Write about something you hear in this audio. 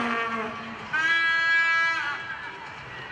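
A referee's whistle blows a long blast.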